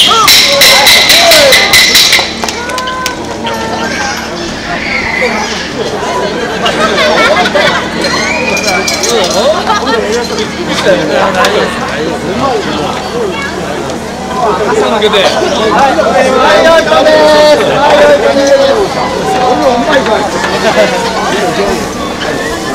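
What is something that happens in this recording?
A large crowd of men chants and shouts rhythmically outdoors.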